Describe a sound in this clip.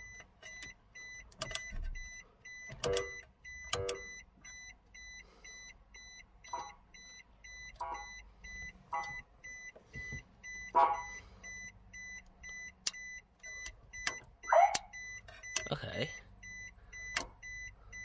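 An electronic unit gives short, repeated high beeps.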